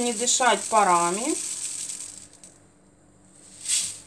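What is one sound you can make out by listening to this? Powder pours softly into a plastic cup.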